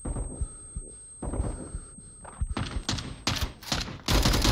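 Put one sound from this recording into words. A high steady ringing tone follows a stun blast.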